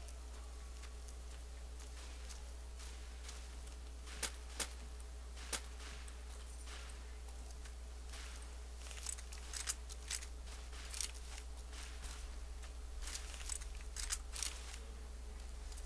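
Footsteps crunch over rubble and gravel.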